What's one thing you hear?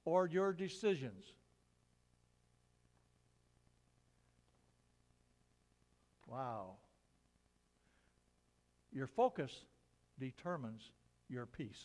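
An elderly man speaks calmly, reading out with long pauses.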